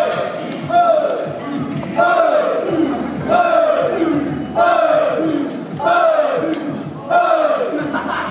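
Upbeat pop music with singing plays through a loudspeaker in an echoing hall.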